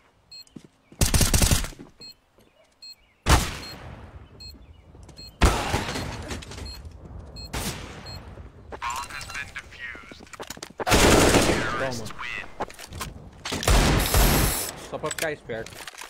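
Gunfire bursts out in loud rapid volleys.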